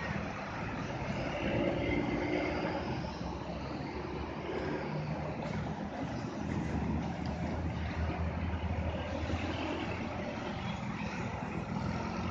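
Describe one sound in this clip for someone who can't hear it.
Motorcycle engines buzz past close by.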